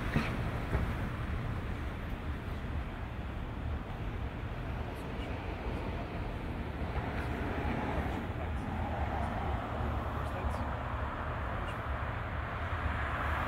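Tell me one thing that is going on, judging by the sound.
A car engine idles nearby with a low, steady rumble.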